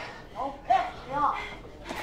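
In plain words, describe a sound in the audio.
A young woman shouts back.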